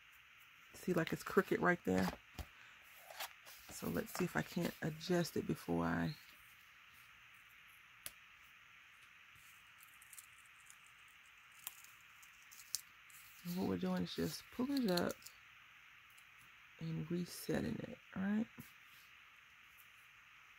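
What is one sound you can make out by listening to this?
Paper rustles softly as hands fold and press it.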